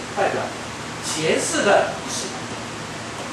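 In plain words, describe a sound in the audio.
A middle-aged man speaks in short bursts.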